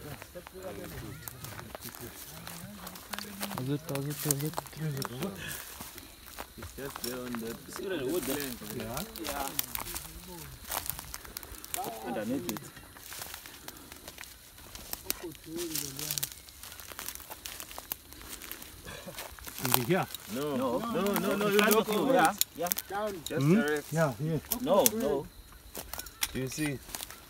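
Footsteps crunch through dry grass and twigs.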